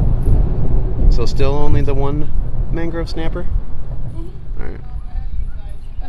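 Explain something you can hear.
A young woman talks casually nearby.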